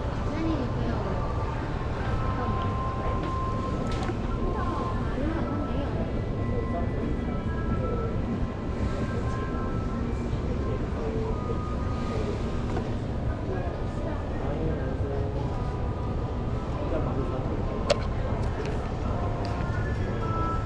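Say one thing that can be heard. Many people murmur and chatter in a large, busy indoor hall.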